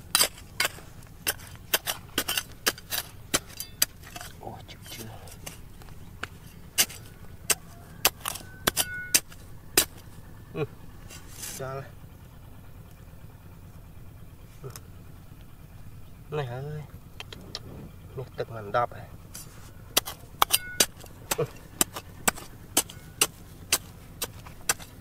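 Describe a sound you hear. A metal trowel knocks and scrapes into dry, gravelly soil.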